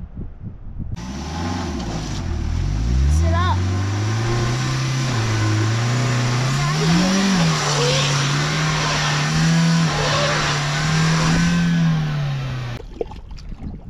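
A van engine revs hard, straining in mud.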